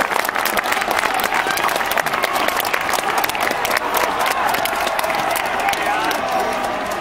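Many people clap their hands.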